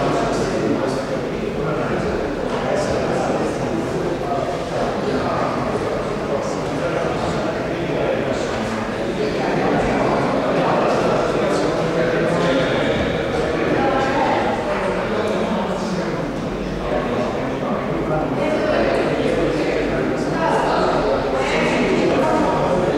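Many men and women chatter at once in a large echoing hall.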